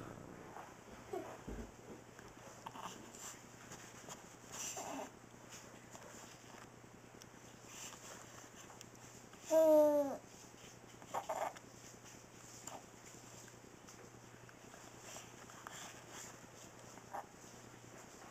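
A baby coos softly.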